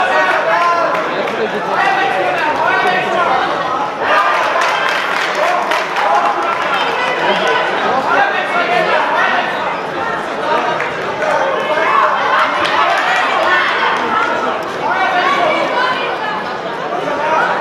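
Boxing gloves thud against a boxer's body and head.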